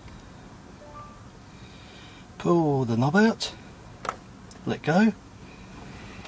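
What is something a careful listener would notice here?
A button clicks softly a few times.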